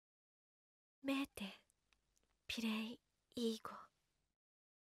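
A young woman speaks softly and hesitantly.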